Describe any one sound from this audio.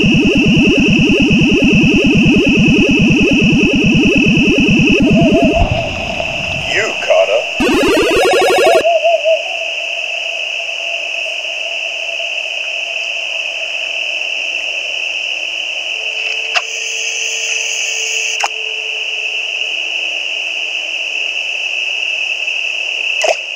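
A steady high electronic game tone hums throughout.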